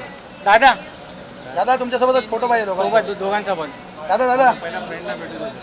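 Men shout and call out loudly nearby.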